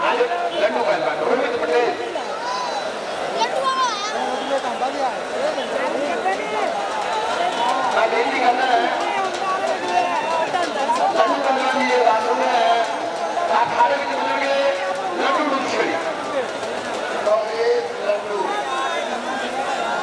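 A crowd of men chatters and calls out loudly outdoors.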